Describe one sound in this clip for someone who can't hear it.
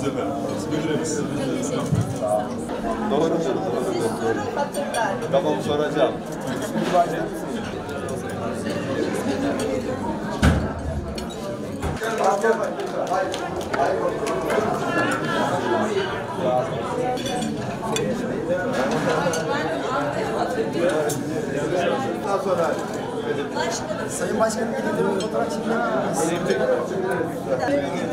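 A crowd of men and women chatter in a busy, echoing room.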